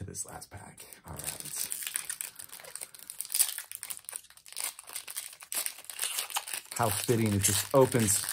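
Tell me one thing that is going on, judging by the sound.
A foil card pack crinkles and tears open.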